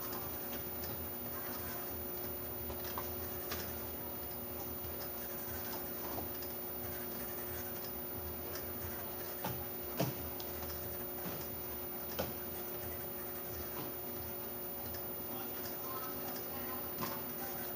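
Bottles clink and knock against each other on a conveyor.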